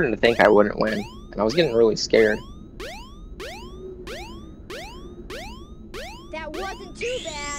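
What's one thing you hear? Quick rising electronic chimes tick as a score counts up.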